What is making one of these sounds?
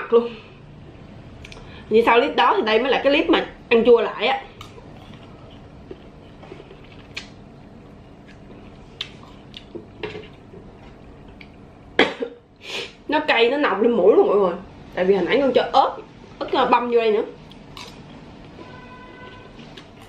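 A spoon clinks against a dish.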